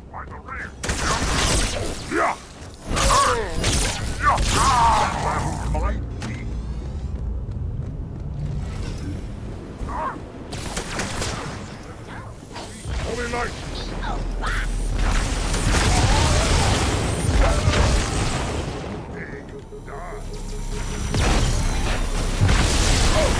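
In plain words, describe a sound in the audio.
Energy blades swing and slash with sharp whooshes.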